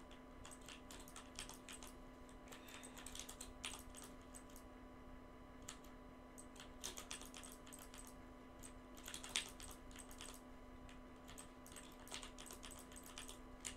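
Building pieces snap into place in quick bursts of sharp clicks.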